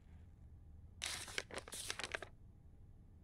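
Paper pages rustle as a notebook is flipped.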